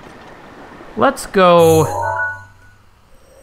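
A bright electronic chime rings out as a menu opens.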